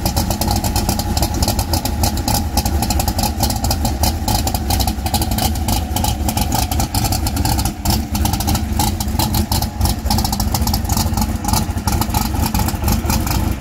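A race car engine rumbles and crackles loudly close by.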